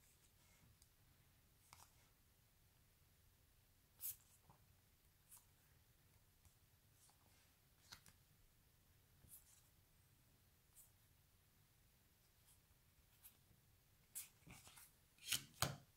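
Cards tap and flick softly as a hand sorts them.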